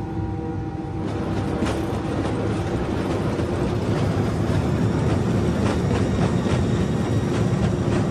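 A jet engine roars louder as the plane speeds up.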